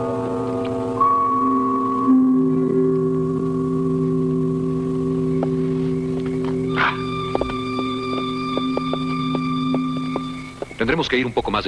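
A truck's air horn blares long and steady.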